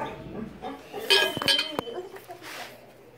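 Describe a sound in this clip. A chain-link gate rattles and clinks.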